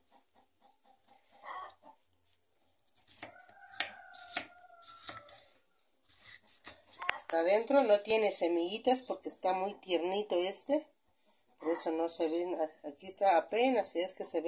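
A knife cuts through a firm melon and taps on a wooden board.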